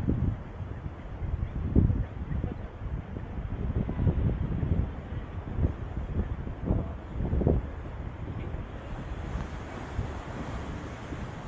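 Wind buffets the microphone outdoors in low rumbling gusts.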